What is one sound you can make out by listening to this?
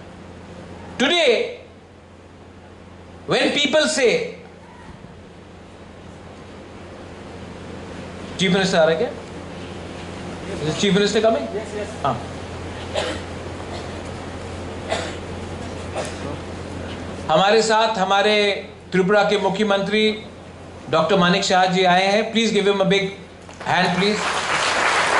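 A man speaks into a microphone over loudspeakers in a large echoing space, in short bursts with pauses.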